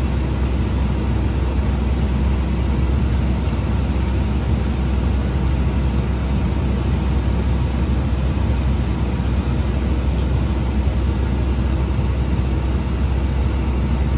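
A bus engine rumbles steadily while riding along.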